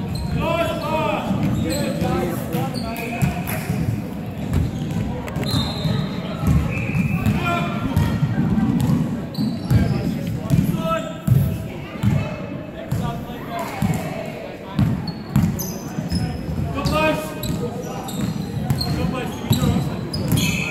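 A basketball bounces with echoing thuds on a hard floor.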